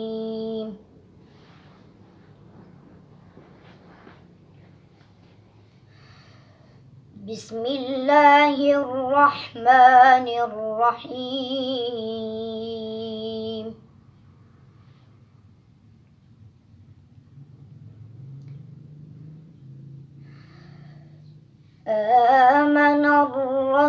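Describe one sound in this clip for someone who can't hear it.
A boy chants melodically in a high, sustained voice, close by, with pauses between phrases.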